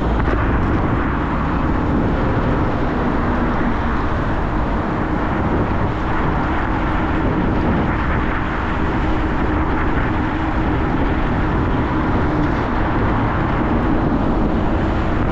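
Tyres hum steadily on a wet road.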